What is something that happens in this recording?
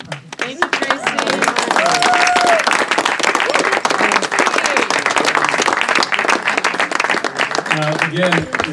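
A crowd of people claps and applauds outdoors.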